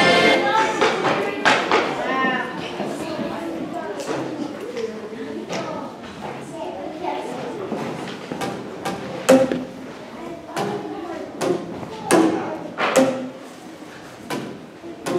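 Children strike plastic tubes, which give hollow pitched bops.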